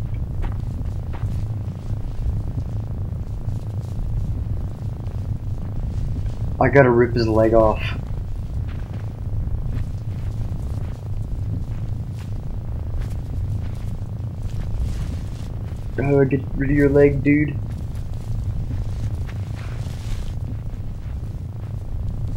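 Light footsteps patter on soft ground.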